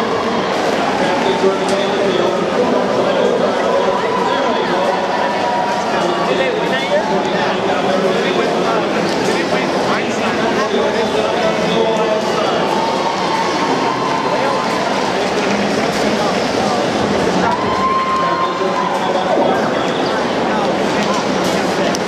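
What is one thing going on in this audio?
A large crowd cheers and chatters in a large echoing hall.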